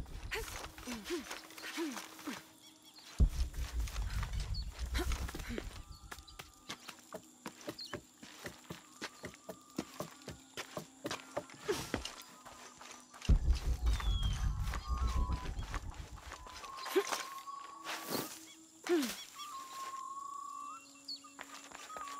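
Footsteps crunch on soft ground.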